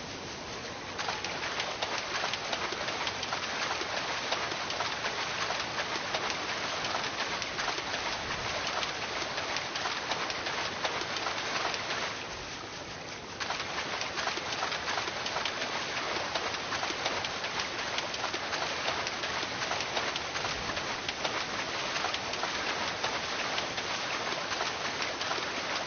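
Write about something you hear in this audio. Water splashes and sprays steadily as something wades quickly through it.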